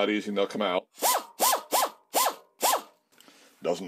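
An air tool whirs in short bursts.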